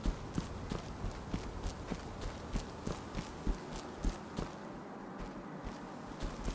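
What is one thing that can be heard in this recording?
Footsteps tread steadily on grass and dirt.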